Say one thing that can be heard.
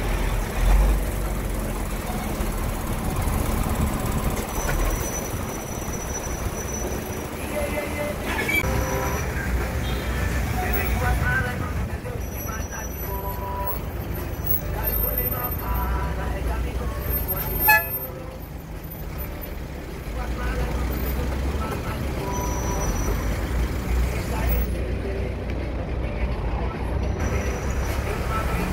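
A bus engine rumbles steadily in slow traffic.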